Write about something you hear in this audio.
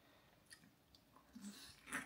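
A man chews food with his mouth close by.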